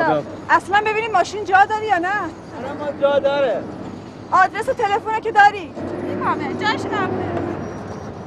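A woman speaks with emotion close by.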